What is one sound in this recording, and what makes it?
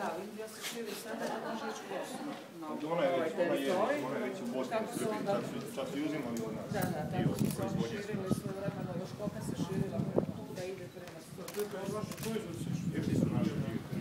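Several men talk close by at once, with animation.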